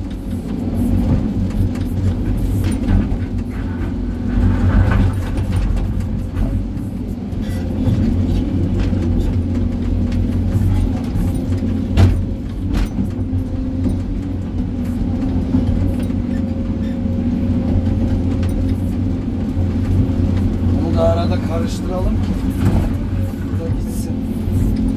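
Rubble and rocks clatter and scrape as a bucket dumps them.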